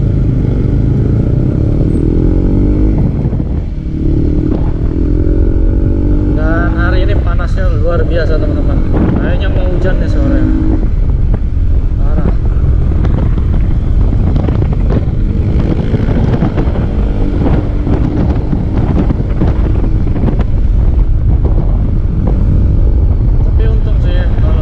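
Wind rumbles and buffets loudly past a moving rider.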